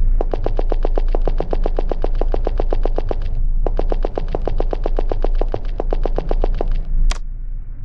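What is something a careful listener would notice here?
Quick footsteps tap steadily.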